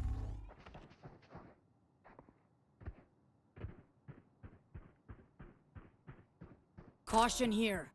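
Footsteps tread at an even pace on a hard floor.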